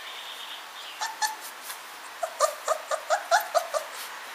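A squeaky toy squeaks in quick, repeated bursts.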